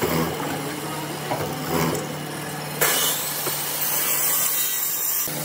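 An electric drill motor hums steadily.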